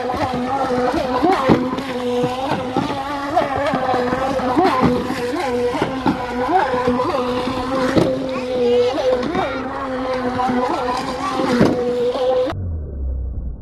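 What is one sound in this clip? A small toy boat motor whirs steadily over the water.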